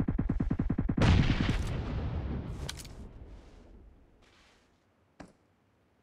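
A rifle shot cracks and echoes away.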